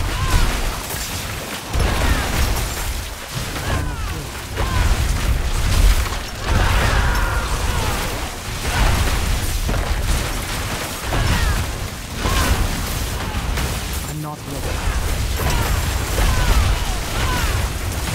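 Spells crackle and explode again and again in a game.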